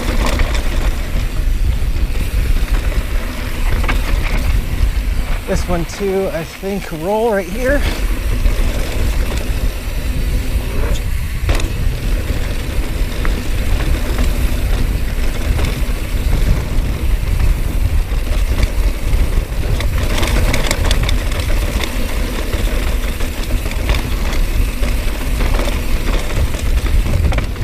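Mountain bike tyres crunch and rattle over a dirt trail.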